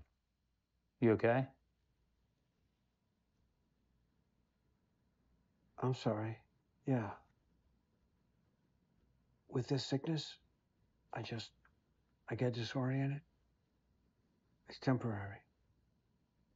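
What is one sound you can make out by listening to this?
A younger man speaks calmly in reply.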